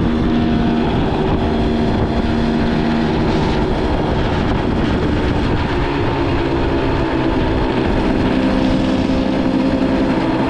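Wind buffets the microphone in a steady low rumble while moving outdoors.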